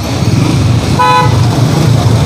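A vehicle horn honks briefly.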